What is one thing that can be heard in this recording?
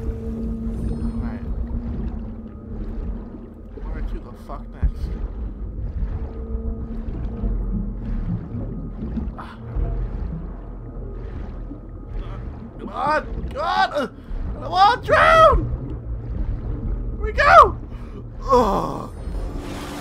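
A swimmer kicks and strokes through water.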